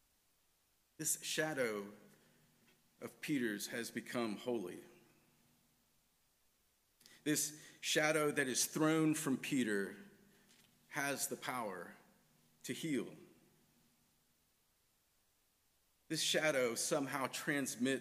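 A man speaks calmly and slowly through a microphone, with pauses, in a reverberant room.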